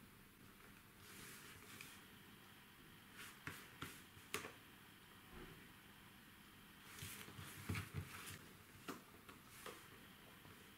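Plastic set squares clack and slide on paper.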